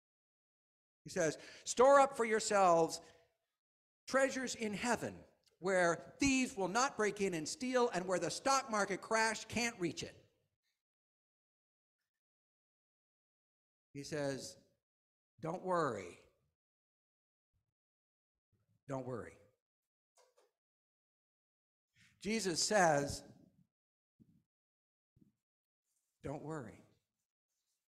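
A middle-aged man speaks with animation through a headset microphone, with pauses between phrases.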